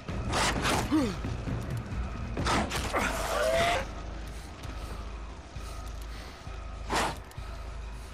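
Blows thud as a man strikes with a club.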